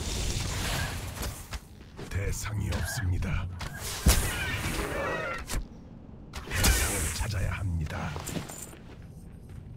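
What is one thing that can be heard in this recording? Magic spells whoosh and burst in a fight.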